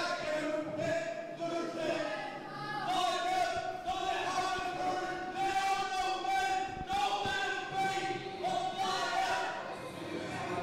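A young man speaks loudly and drawn out through a microphone, heard over loudspeakers in a large echoing hall.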